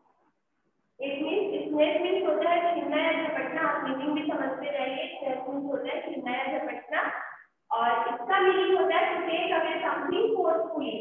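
A woman speaks clearly and steadily, explaining as if teaching.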